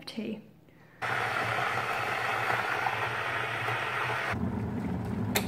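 A kettle rumbles as water boils.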